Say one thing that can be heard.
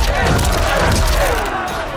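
Energy blasts whoosh and burst.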